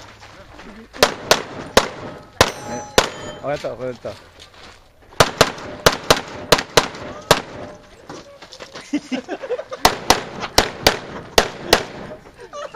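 Pistol shots crack in quick bursts outdoors, echoing off the range.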